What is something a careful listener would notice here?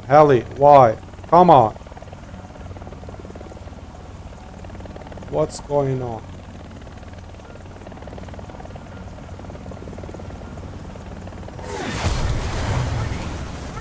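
A helicopter's rotor thuds steadily.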